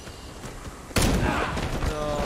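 A gunshot cracks.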